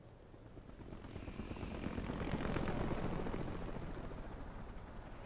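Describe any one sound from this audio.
Helicopter rotors thump loudly overhead and grow louder.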